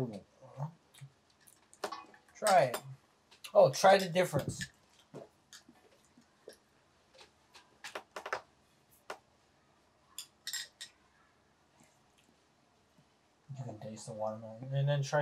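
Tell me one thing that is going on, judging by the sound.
Chopsticks click and tap against dishes.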